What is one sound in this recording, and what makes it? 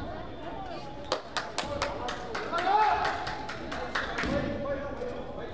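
A basketball bounces on a wooden court in a large echoing gym.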